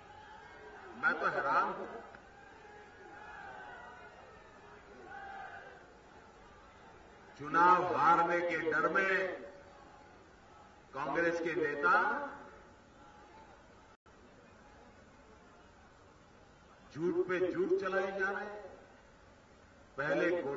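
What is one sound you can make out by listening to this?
A man speaks forcefully into a microphone over a loudspeaker, in bursts with pauses, echoing outdoors.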